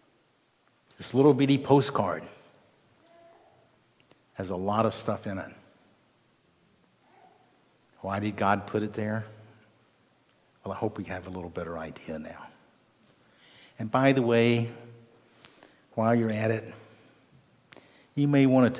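An elderly man speaks slowly and earnestly through a microphone, with long pauses.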